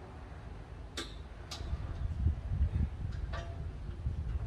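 A metal strap clinks sharply against a post a few times.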